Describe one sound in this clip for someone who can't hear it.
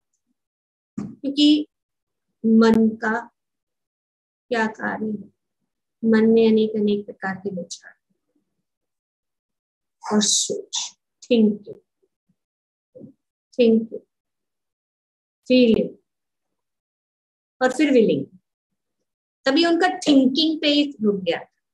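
An elderly woman speaks slowly and calmly, in short phrases with pauses, heard through an online call.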